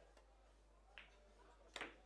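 A cue strikes a pool ball with a sharp tap.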